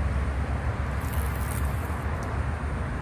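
A fishing reel whirs as its line is wound in.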